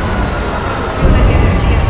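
An electronic scanning sound hums and crackles.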